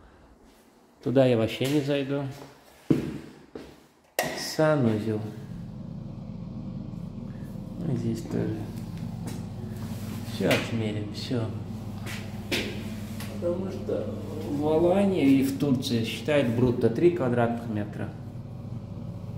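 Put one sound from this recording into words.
A young man talks calmly close by, in a small echoing room.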